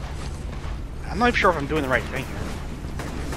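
A man speaks briefly through a headset microphone.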